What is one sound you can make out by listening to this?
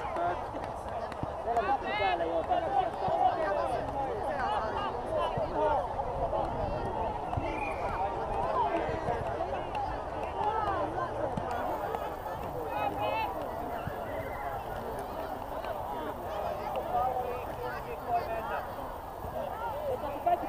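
Young children shout and call out across an open field outdoors.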